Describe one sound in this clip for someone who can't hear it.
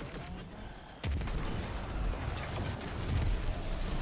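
Energy blasts explode loudly.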